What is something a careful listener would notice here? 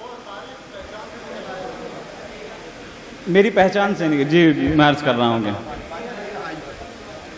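A young man recites loudly through a microphone over loudspeakers.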